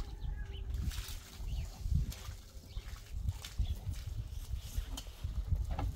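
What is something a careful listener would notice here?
Soil pours out of a container onto the ground.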